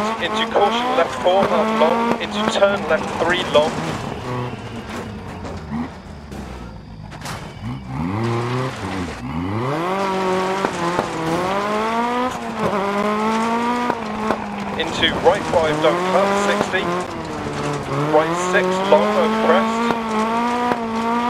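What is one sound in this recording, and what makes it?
A rally car engine roars and revs up and down at high speed.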